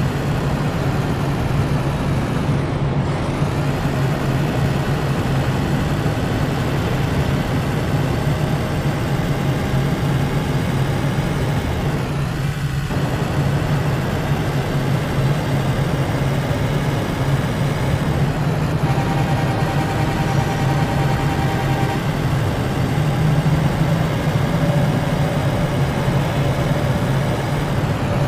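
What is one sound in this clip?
A heavy truck engine rumbles steadily as it drives along.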